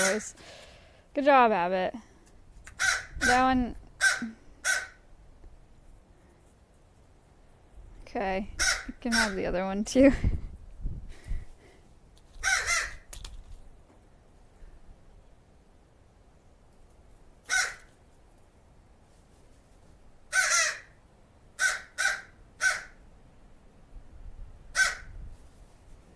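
A crow caws and croaks close by.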